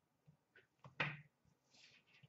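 Cardboard cards tap as they are dropped.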